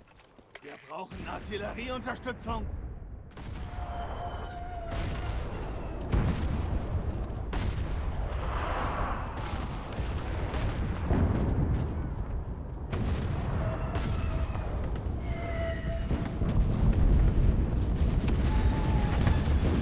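A large fire roars and crackles nearby.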